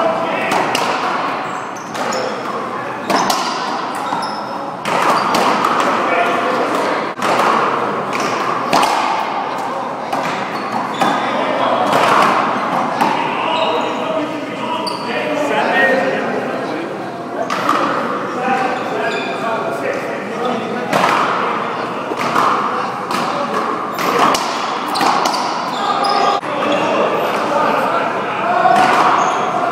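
A ball smacks against a wall and rackets with sharp echoing cracks in a large hall.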